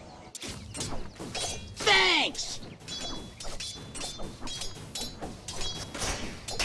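Game combat effects clash and zap in quick bursts.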